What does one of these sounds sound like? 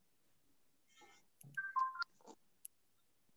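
A man speaks briefly and quietly over an online call.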